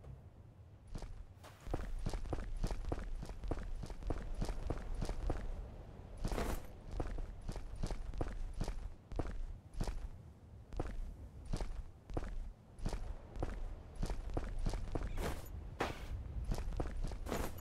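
Footsteps crunch steadily on sand and stone.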